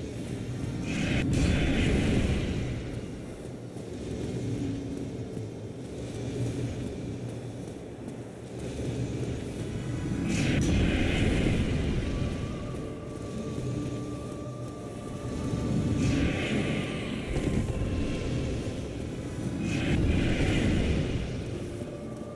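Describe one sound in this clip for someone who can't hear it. Magic bolts burst with a loud, rushing whoosh.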